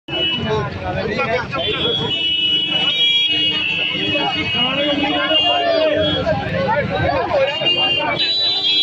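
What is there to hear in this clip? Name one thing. A crowd of men shouts and chants loudly outdoors.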